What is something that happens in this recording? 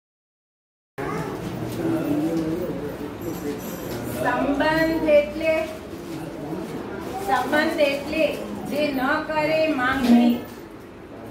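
A woman reads out in a room, heard from a short distance.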